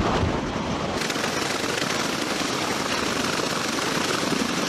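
A tiltrotor aircraft's spinning rotors roar loudly and steadily.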